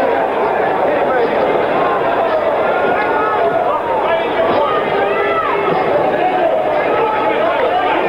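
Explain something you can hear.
A large crowd cheers and shouts throughout.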